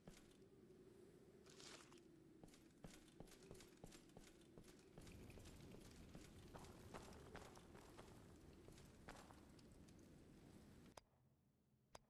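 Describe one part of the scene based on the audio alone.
Heavy armoured footsteps clank and crunch on stone and snow.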